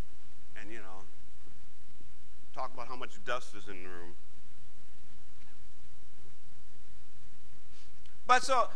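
A man speaks calmly into a clip-on microphone, in short bursts with pauses.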